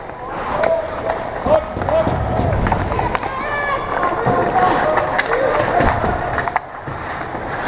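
Players' voices call out across a large echoing rink.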